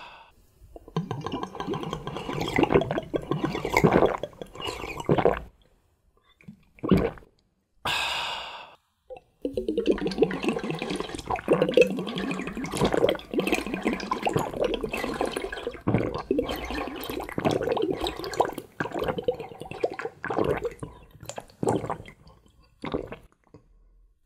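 A man slurps a drink noisily through a straw.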